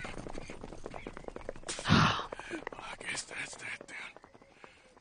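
Horse hooves clop on the ground.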